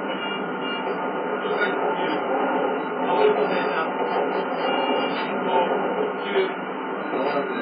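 A train rumbles steadily along rails from a game's speakers.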